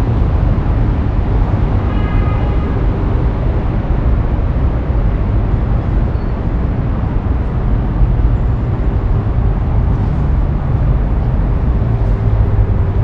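Wind blows steadily and rumbles outdoors.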